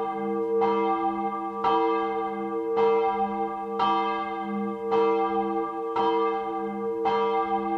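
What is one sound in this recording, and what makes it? A church bell tolls slowly and rings on between strokes.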